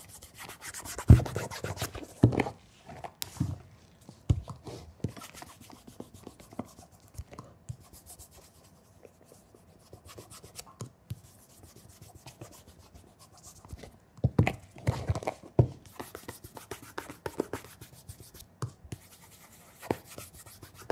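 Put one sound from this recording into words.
A leather shoe knocks and scrapes against a hard surface.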